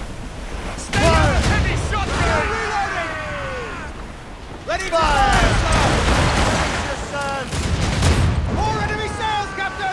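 Cannons fire with heavy booms.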